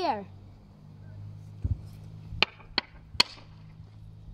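A hurley stick taps the ground.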